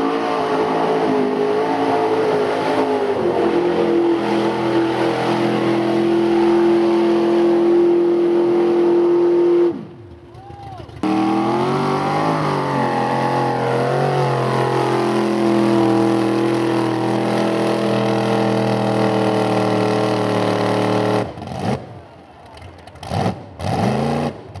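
Mud splatters and sprays against a truck.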